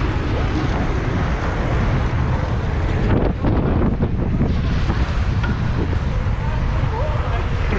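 Wind rushes loudly past while riding outdoors.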